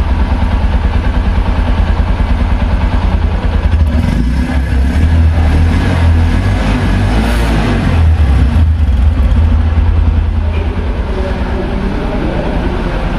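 A motorcycle engine idles with a steady, rapid low thumping from the exhaust.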